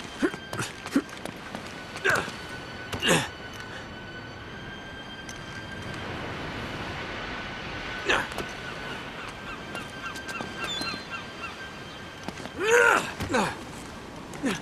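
A man grunts as he climbs and pulls himself up.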